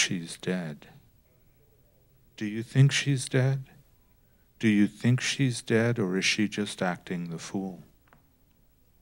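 An elderly man reads out calmly into a microphone.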